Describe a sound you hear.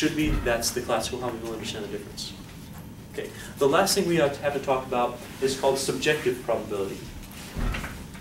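A young man lectures calmly in an echoing room.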